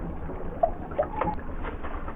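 Water splashes in a bucket.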